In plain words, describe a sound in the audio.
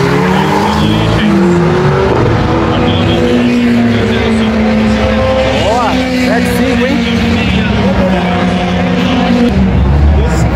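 Race car engines roar and rev down a track.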